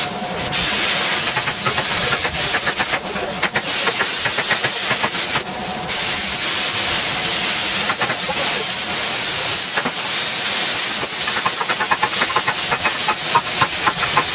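An electric welding arc crackles and sizzles steadily up close.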